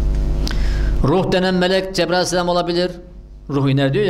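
An elderly man reads aloud steadily into a microphone.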